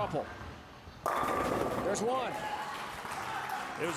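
Bowling pins crash and scatter loudly.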